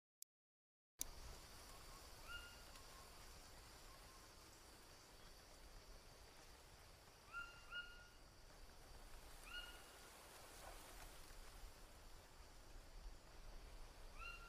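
Wind rustles through leaves.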